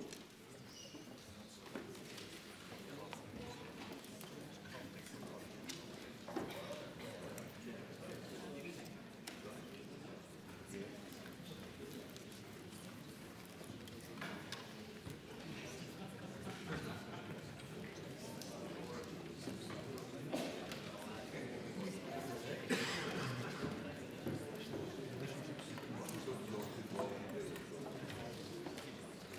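A man speaks steadily through a microphone in a large, echoing hall.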